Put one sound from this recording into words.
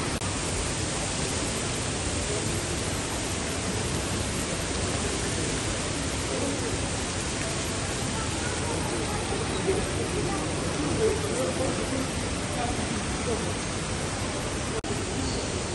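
Many voices murmur in a large echoing hall.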